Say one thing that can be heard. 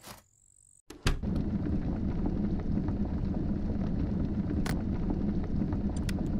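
A fire crackles and hisses in a fireplace.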